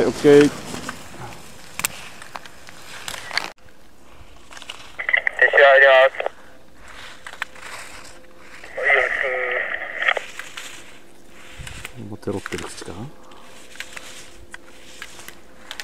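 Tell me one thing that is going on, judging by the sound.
Skis scrape and hiss across hard snow.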